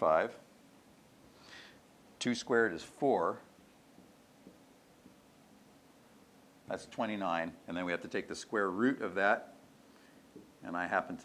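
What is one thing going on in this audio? An older man speaks calmly in short phrases, close by.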